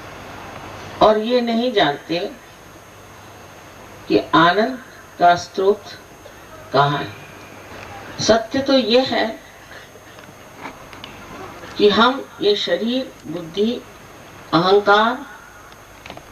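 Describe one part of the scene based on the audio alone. An elderly woman speaks calmly into a microphone, in short phrases with pauses.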